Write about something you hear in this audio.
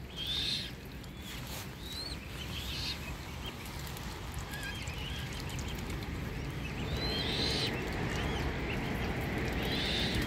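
Cygnets peep in high, chirping calls.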